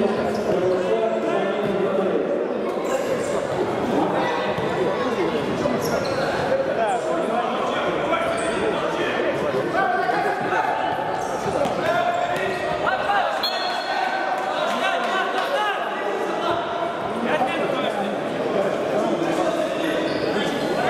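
Spectators chatter and shout in an echoing sports hall.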